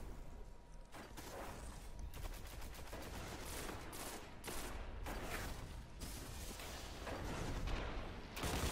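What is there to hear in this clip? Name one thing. A rifle fires sharp shots in quick bursts.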